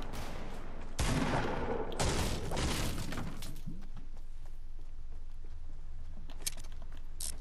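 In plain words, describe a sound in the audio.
A pickaxe strikes wooden planks.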